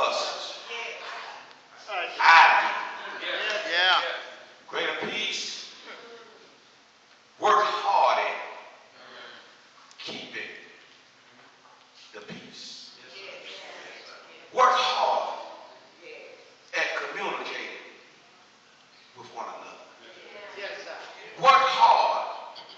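A man preaches with passion into a microphone, his voice echoing in a large hall.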